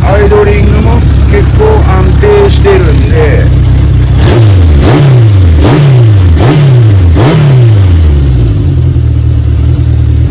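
A Honda CB750 inline-four motorcycle engine idles.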